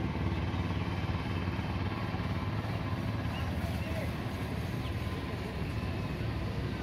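A motorcycle engine idles close by with a steady, low, throbbing rumble.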